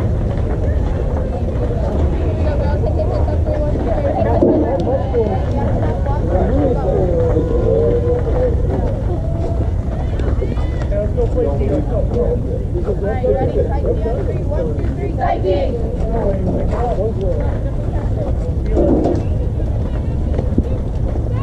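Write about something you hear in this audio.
Several people talk and call out at a distance.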